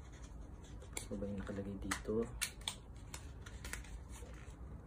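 Hands tap and rustle packaging with small clicks.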